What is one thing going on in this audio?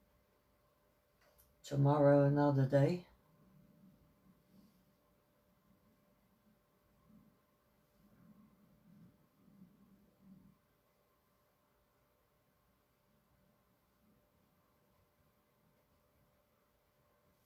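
A paintbrush dabs softly against canvas.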